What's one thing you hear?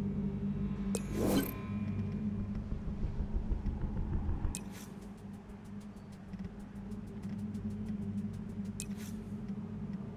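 Menu selection clicks sound as options change.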